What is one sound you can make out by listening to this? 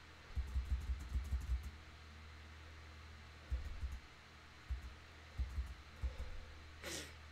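A man speaks quietly and close to a microphone.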